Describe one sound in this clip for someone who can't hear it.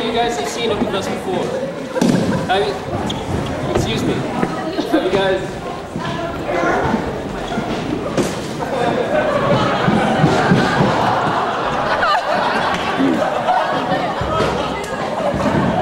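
A young man speaks with animation in a large echoing hall.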